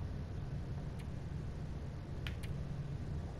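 A menu selection clicks softly.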